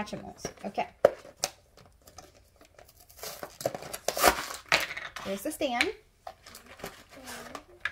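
A plastic wrapper crinkles.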